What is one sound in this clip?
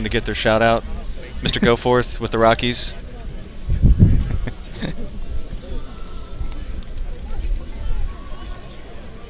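A crowd murmurs faintly outdoors.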